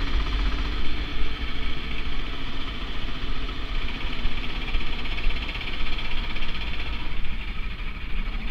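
A kart engine drones steadily as the kart drives.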